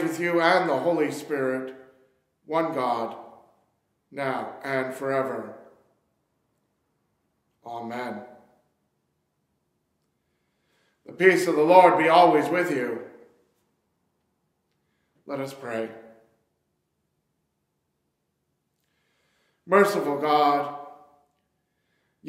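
A man speaks calmly into a microphone, pausing between phrases, in a slightly echoing room.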